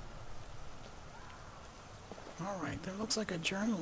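A frost spell crackles and hums softly.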